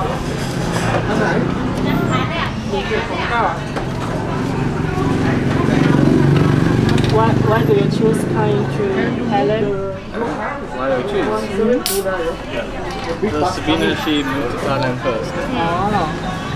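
A young man talks casually across a table.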